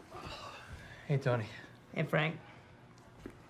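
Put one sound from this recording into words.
A young man answers calmly.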